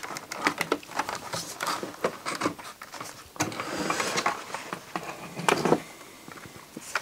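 Small plastic and metal parts click and rattle as a mechanism is handled.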